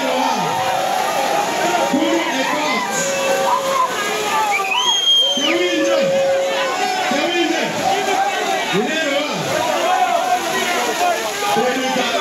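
A crowd sings and chants loudly together.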